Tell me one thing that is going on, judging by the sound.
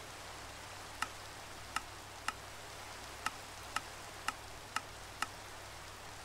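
Menu buttons click sharply, one after another.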